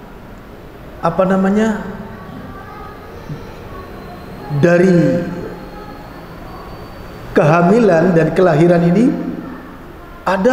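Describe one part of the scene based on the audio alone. An elderly man speaks calmly into a microphone in short phrases, with pauses between them.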